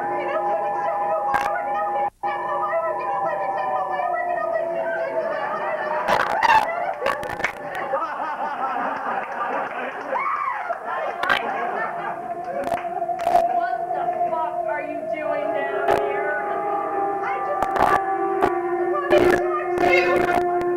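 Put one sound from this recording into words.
A woman speaks loudly, heard from a distance in a hall.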